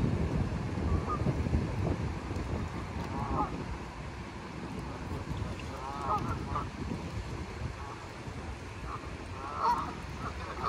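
Geese honk now and then on the water.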